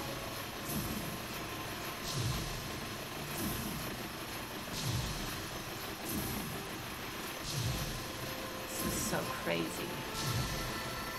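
Video game sound effects whoosh in a regular, repeating rhythm.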